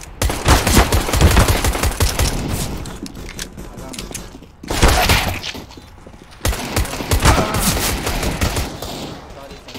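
Rapid gunshots crack in bursts.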